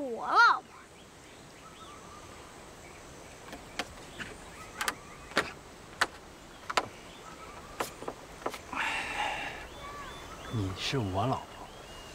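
A young man speaks playfully, close by.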